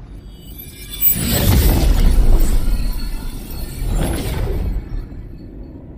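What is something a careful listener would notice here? A magical shimmering whoosh swells and fades as a stone lights up.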